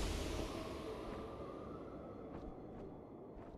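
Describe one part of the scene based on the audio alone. Steam hisses steadily and fades away.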